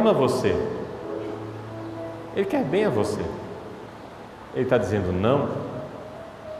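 A man speaks with animation through a microphone, echoing in a large reverberant hall.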